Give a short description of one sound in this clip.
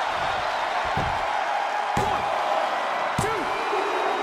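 A hand slaps down on a wrestling ring mat.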